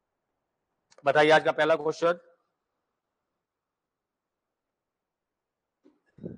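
A man speaks clearly into a microphone, like a lecturer.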